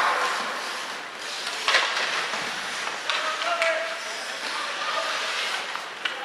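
Skates scrape and swish across the ice in an echoing rink.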